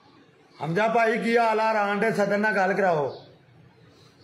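A middle-aged man speaks into a phone close by, with animation.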